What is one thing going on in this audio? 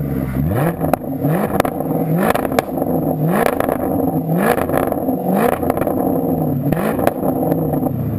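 An exhaust pops and crackles sharply between revs.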